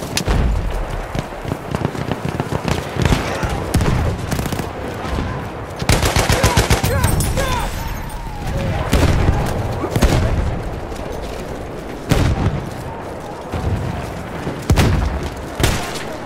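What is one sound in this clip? Footsteps crunch quickly over forest ground.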